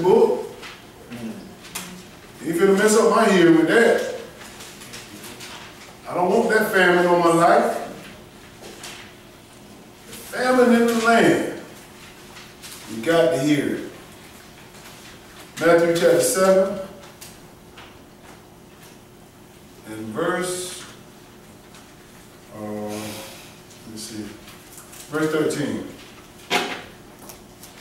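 A man speaks with feeling in short bursts, with pauses between them.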